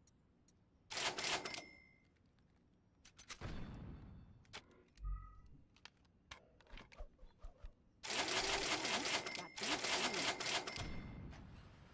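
A gun clicks and rattles as it is handled.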